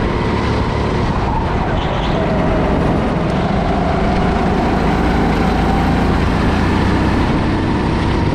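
A small kart engine buzzes loudly and steadily up close.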